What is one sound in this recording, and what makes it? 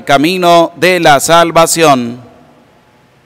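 A man sings a chant into a microphone, echoing in a large hall.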